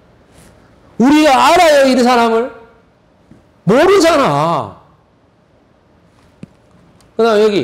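A man lectures with animation through a microphone, in bursts of speech.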